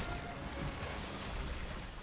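Water splashes as a creature thrashes in a shallow stream.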